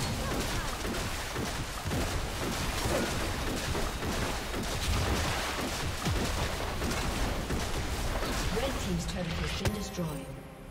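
Weapons clash and magic spells crackle in a fast, busy fight.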